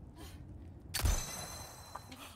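A gunshot cracks once.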